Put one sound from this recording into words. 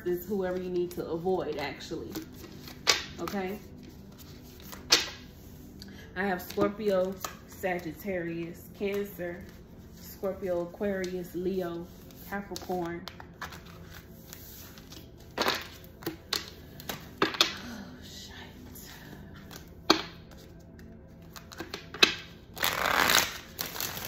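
Playing cards slide and tap on a hard tabletop.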